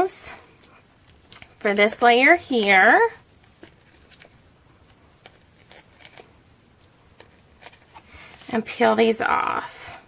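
Paper rustles and taps softly as it is handled.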